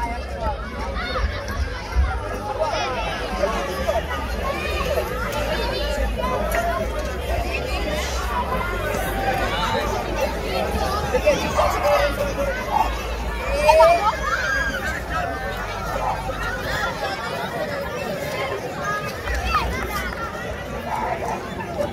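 A large outdoor crowd of men, women and children chatters with many voices at once.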